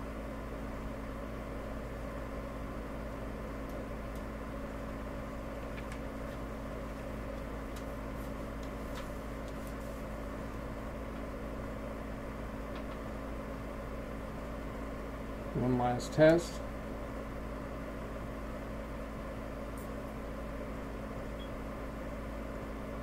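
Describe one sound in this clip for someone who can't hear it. Small parts click and rattle softly as wires are handled.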